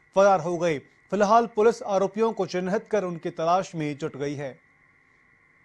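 A man speaks with animation nearby.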